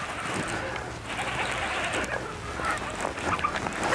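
A fishing reel whirs as the line is wound in.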